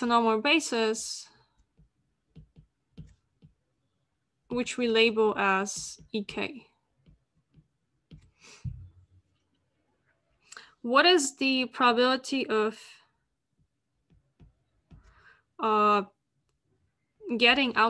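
A woman speaks calmly in short phrases, heard through an online call.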